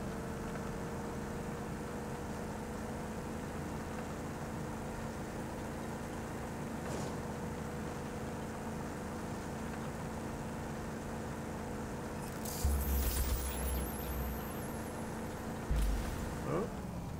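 A vehicle engine hums steadily as it drives over rough dirt.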